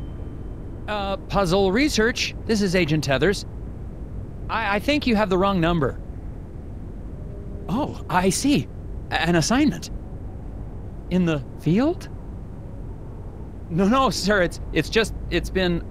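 A man speaks on the phone in a quick, garbled, comical voice.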